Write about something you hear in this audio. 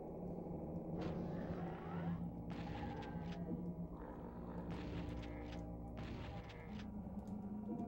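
Shotgun blasts boom from a video game.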